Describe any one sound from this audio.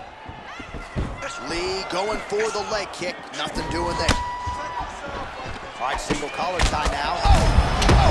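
Punches and kicks land with heavy thuds.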